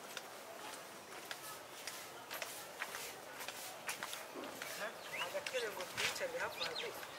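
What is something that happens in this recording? Footsteps crunch softly on a dirt path outdoors.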